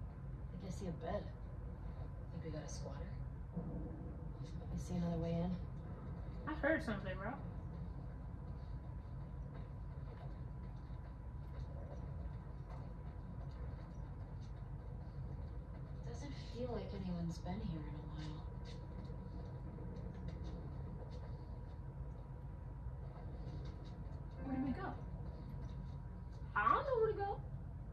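Muffled game sounds play from a television loudspeaker.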